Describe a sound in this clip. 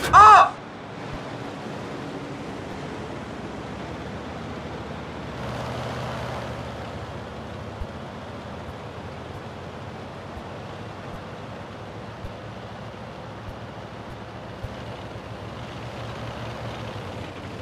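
A tank engine rumbles steadily as it drives.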